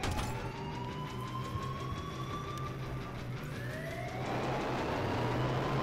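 A jet engine whines as it spins up.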